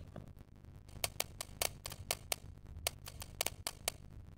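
A safe's combination dial clicks as it turns.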